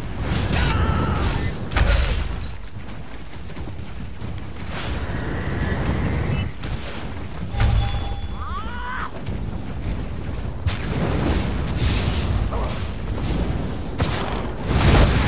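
Electric spells crackle and zap in bursts.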